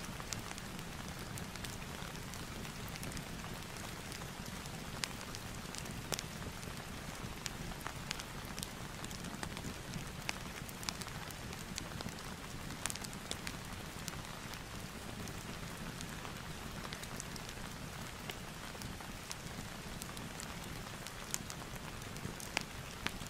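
Fingers tap lightly on a laptop keyboard.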